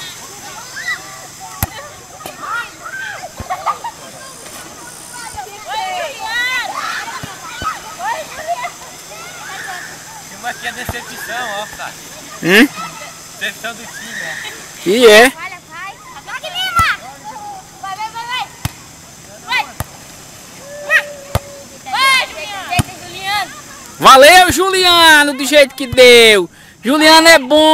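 A crowd of young people chatters and shouts outdoors.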